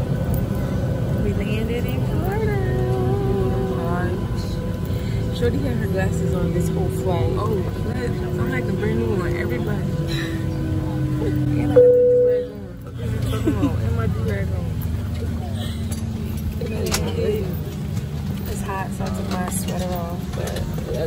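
A young woman talks softly and cheerfully close by.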